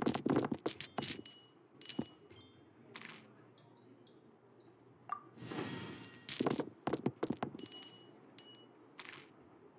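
Chimes ring as dice settle.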